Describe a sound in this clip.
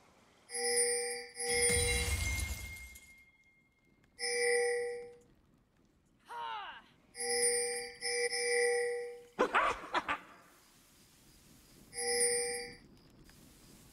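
Chiming magic effects ring out in short bursts.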